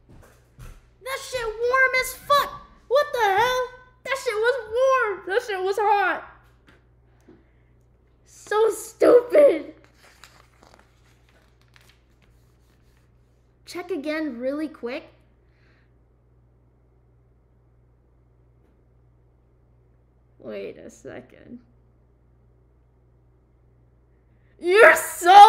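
A young woman talks animatedly and close by, in bursts with pauses.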